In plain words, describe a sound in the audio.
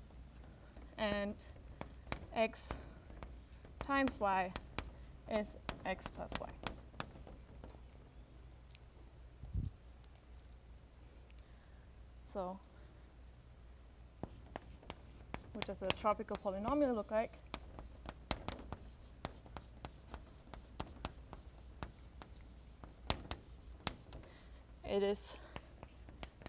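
A young woman speaks calmly in short phrases.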